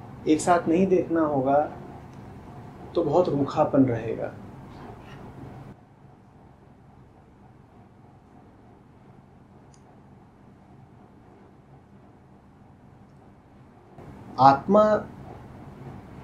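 A man speaks calmly and slowly into a close microphone, with long pauses.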